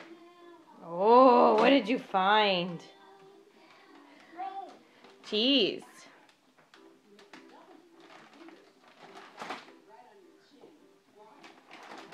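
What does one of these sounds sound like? A small child rummages through a drawer, knocking things about.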